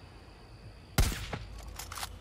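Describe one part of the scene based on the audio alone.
A rifle fires a single loud shot.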